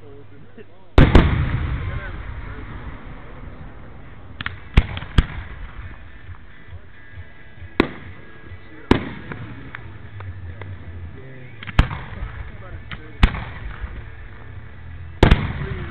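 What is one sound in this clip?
Fireworks crackle and pop after bursting.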